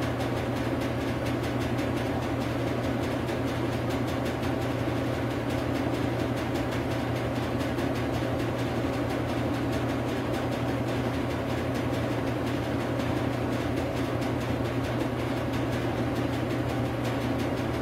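A washing machine drum spins with a steady motor hum and whir.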